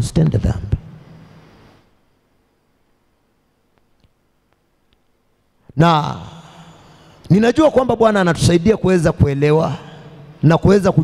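A man speaks with animation into a microphone, heard through a loudspeaker in an echoing hall.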